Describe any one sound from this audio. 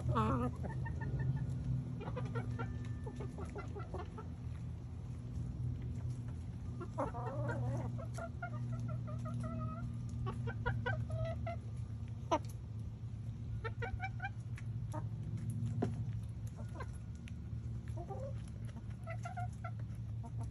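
Hens peck at soft pumpkin flesh on the ground.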